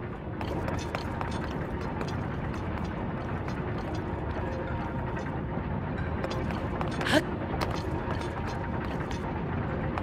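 A game character's footsteps tap on stone.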